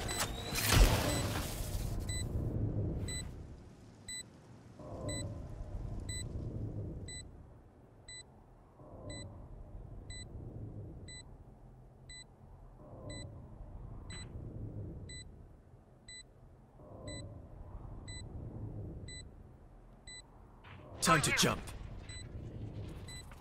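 A bomb timer beeps steadily.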